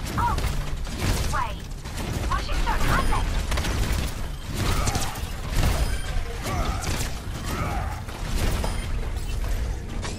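Explosions boom and crack.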